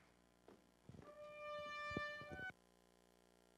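A trumpet plays a few sustained notes.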